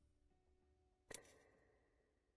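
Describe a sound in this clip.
A short menu click sounds.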